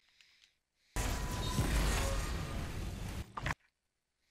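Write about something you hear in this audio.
A huge energy blast roars.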